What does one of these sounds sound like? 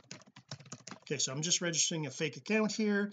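A middle-aged man talks calmly close to a microphone.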